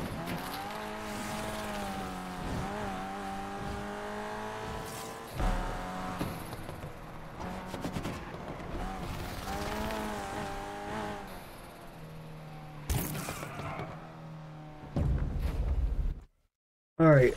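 A car engine roars and revs as it speeds along.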